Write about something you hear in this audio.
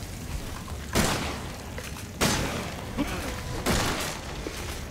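A shotgun fires loud shots.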